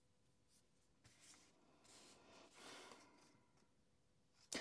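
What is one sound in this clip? Cards rustle and slide softly as they are shuffled.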